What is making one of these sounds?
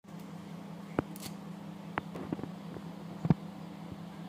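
Dry leaves crackle as fingers crumble them into a bowl.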